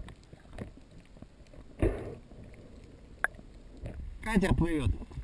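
Air bubbles rise and gurgle underwater.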